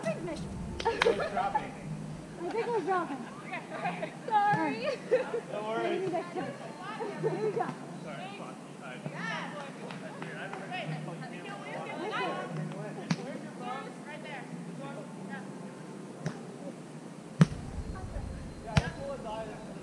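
A ball is struck with a thud.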